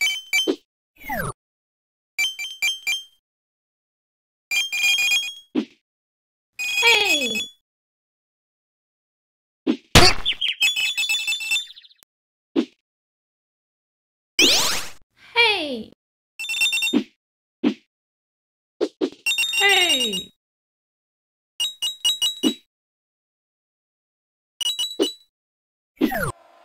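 Short whooshing sounds swoop downward.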